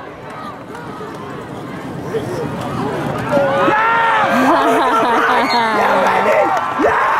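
A crowd of spectators cheers and shouts outdoors, growing louder as the play goes on.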